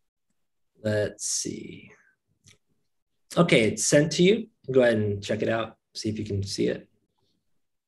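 An elderly man speaks over an online call.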